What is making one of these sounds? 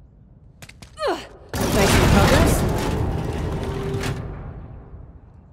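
Footsteps fall on stone.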